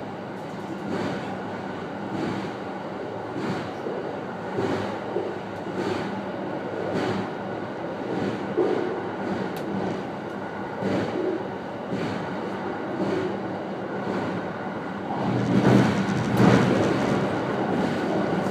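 An electric train runs at speed over a steel bridge, rumbling.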